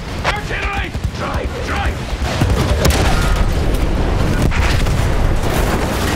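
Artillery shells explode nearby with heavy booms.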